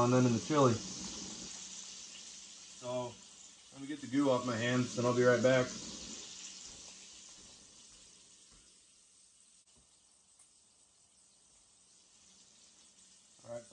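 Bacon sizzles in a hot pan, slowly quieting.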